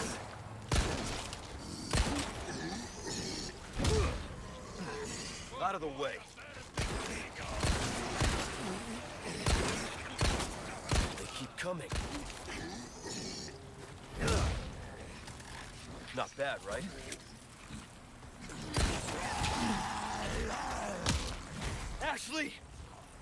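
Men groan and snarl nearby.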